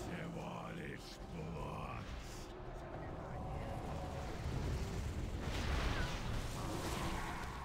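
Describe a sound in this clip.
Magic spells whoosh and crackle amid a loud battle.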